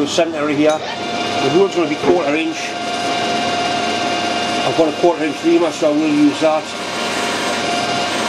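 A drill bit bores into spinning brass with a thin whine.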